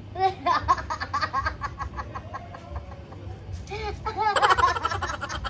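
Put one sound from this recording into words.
A boy laughs and giggles nearby.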